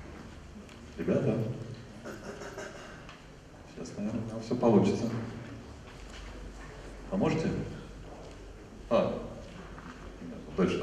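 A man speaks into a microphone in a large hall, in bursts with pauses.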